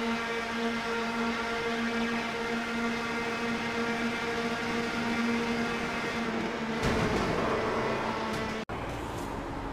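Racing car engines whine steadily at high speed.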